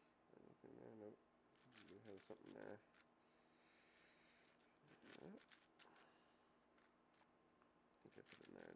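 A puzzle cube clicks and clacks as it is turned quickly.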